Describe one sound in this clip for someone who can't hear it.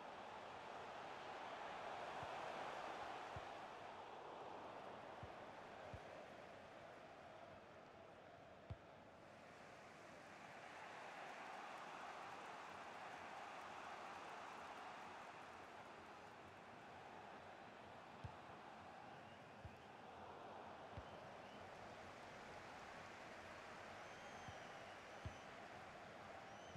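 A large crowd roars and murmurs steadily in a big stadium.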